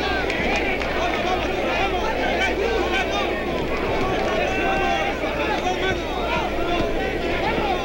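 A large crowd roars and shouts in a big arena.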